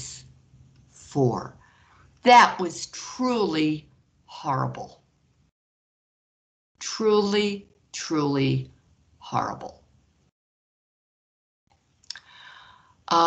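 A woman explains calmly over an online call.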